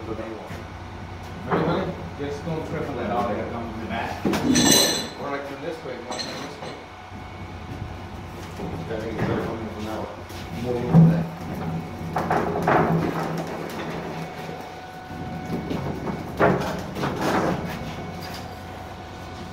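Several men talk nearby.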